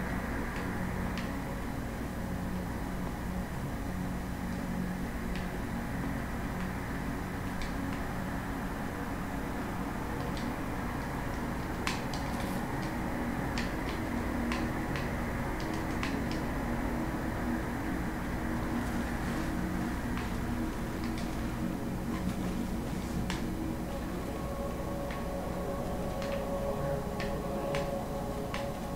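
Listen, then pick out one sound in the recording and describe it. Footsteps patter quickly as a character runs.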